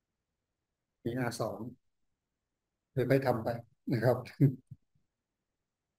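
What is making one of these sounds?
A man speaks calmly over an online call, in short phrases.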